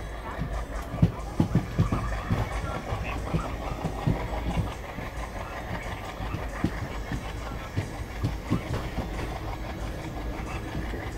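Train wheels clack over rail joints in an uneven beat.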